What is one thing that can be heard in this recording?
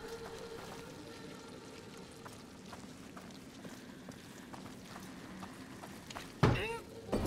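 Footsteps crunch softly on a dirt floor.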